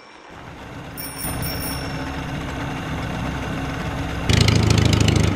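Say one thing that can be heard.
A small boat motor hums steadily.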